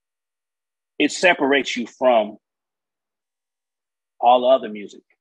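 A man speaks calmly into a microphone in short bursts, as if on an online call.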